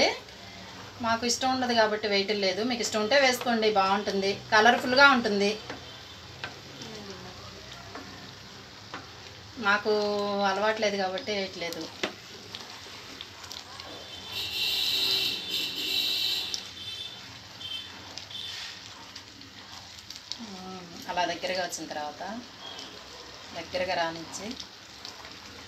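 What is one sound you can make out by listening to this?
A wooden spoon stirs thick liquid in a metal pot.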